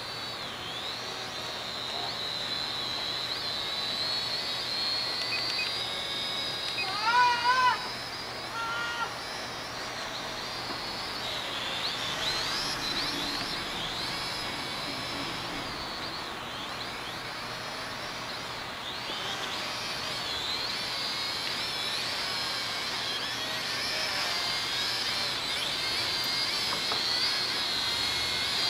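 A small drone's motors whine overhead, rising and falling in pitch.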